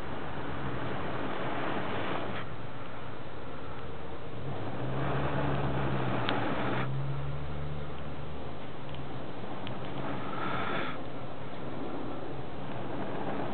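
Burning embers crackle softly.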